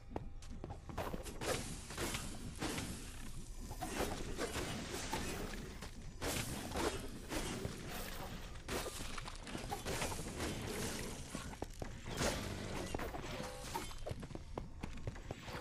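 Blades slash and strike in quick bursts of fighting.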